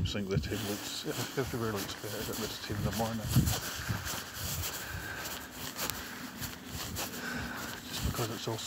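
Bare feet step on grass.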